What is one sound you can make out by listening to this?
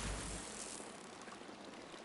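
Water splashes as a figure wades in.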